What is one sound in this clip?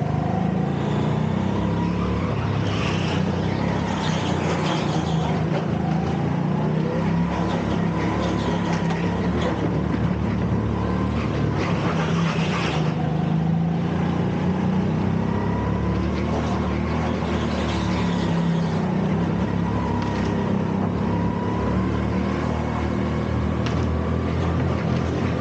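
A small kart engine buzzes loudly up close, its pitch rising and falling with speed.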